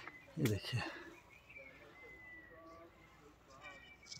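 Leaves rustle as branches are brushed aside.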